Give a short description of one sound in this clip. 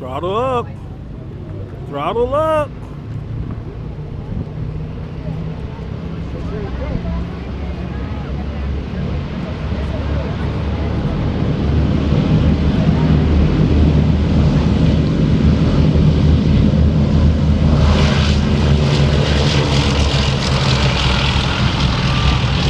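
A propeller aircraft's engines drone in the distance and grow steadily louder as it approaches.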